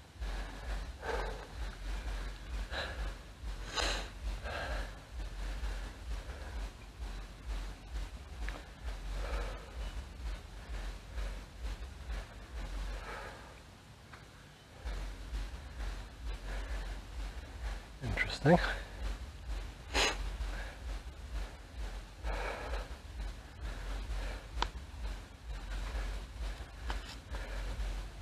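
A gloved hand brushes and rubs close against the microphone.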